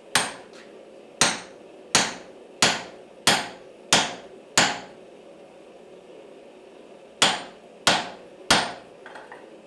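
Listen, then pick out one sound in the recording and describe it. A hammer strikes hot metal on an anvil with sharp, ringing blows.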